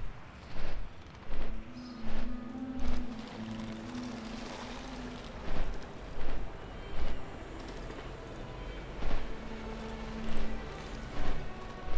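Large wings beat with rhythmic whooshes.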